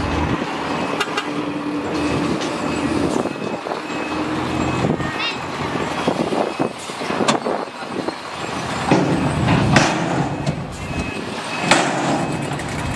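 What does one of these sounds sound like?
Traffic and motorbikes drone along a busy road.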